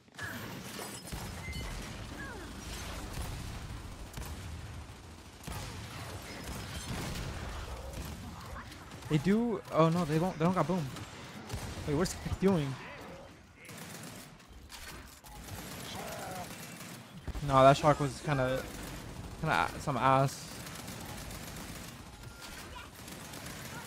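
Rapid gunfire rattles and cracks.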